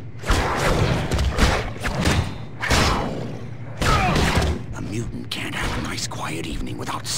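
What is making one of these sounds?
A creature's fists strike an opponent with heavy thuds.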